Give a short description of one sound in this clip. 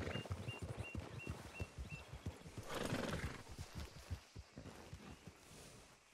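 Horse hooves thud steadily on soft ground at a walk.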